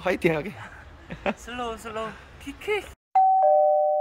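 A young man talks cheerfully and laughs close by.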